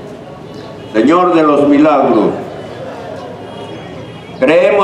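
Women sing loudly close by.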